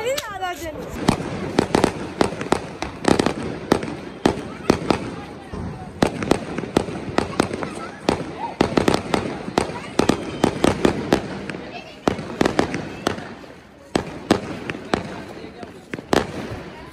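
Fireworks burst and crackle rapidly outdoors.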